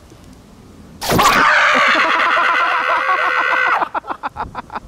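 A young man lets out a long, loud strained yell.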